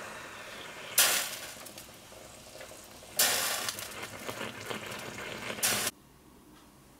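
Coffee gurgles up in a moka pot.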